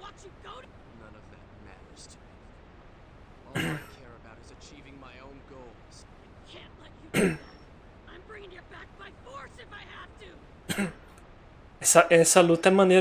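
A man speaks calmly and quietly into a close microphone.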